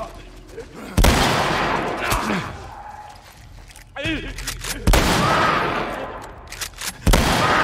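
A shotgun fires loud blasts that ring out.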